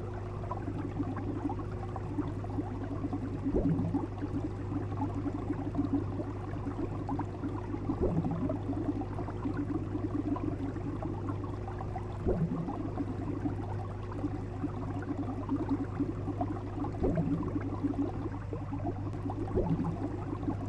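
Water bubbles and gurgles steadily in an aquarium.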